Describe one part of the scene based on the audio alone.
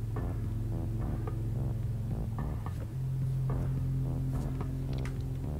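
Soft electronic game music plays with steady, plucked notes.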